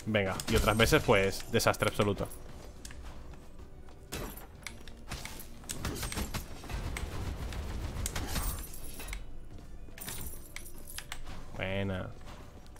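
Video game sound effects of an axe swinging and striking ring out.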